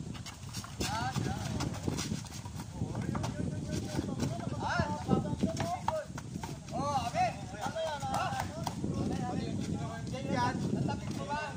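Children shout and call out while playing outdoors.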